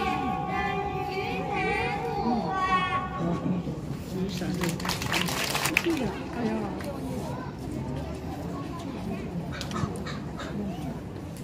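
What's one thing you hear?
A crowd of children and adults chatters nearby outdoors.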